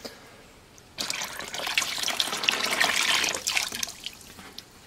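Water pours and splashes into a plastic tub.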